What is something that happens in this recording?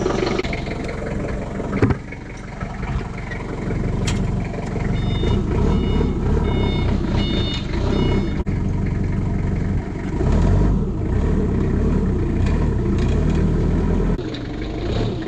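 A forklift engine runs with a steady low rumble.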